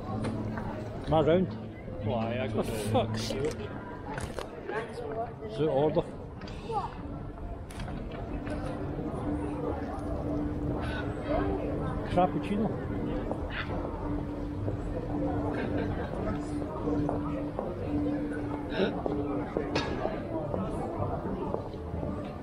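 Passersby chatter in a busy street outdoors.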